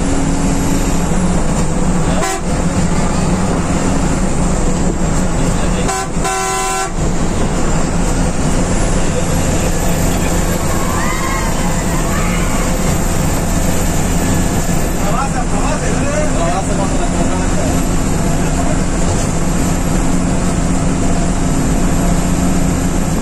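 A bus engine roars steadily from close by.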